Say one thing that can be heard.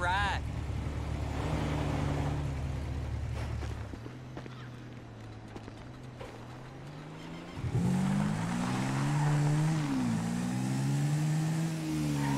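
A quad bike engine idles and revs.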